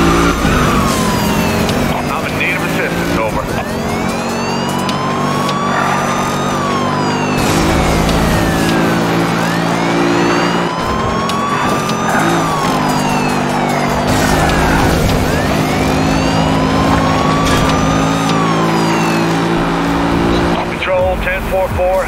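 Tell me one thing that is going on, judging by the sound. A police siren wails, rising and falling over and over.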